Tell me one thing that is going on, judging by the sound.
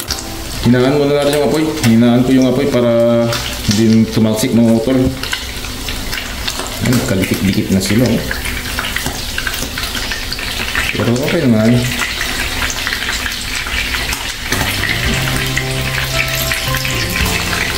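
Metal tongs scrape and tap against a frying pan.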